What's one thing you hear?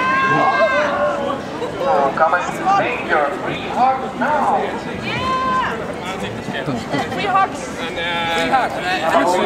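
People chatter and call out nearby.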